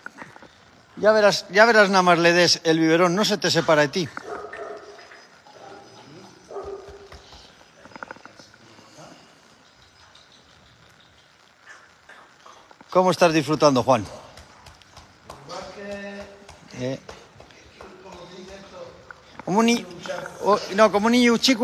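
A middle-aged man talks warmly and with animation, close by.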